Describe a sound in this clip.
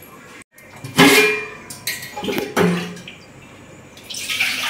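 Metal pots clank against each other.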